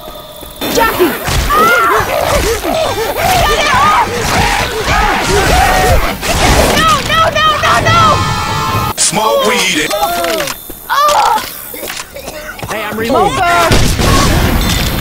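Zombies snarl and shriek nearby.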